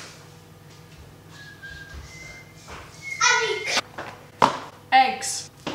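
A young boy talks cheerfully close by.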